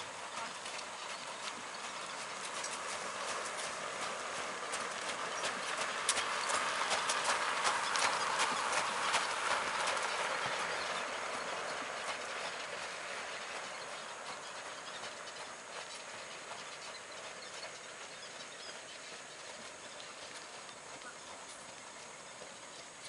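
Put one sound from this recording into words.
Carriage wheels crunch and rattle over gravel, growing louder as they pass and then fading.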